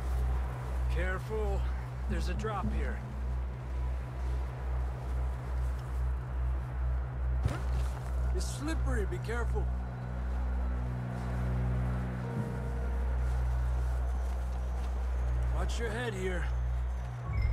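A man speaks a short warning calmly.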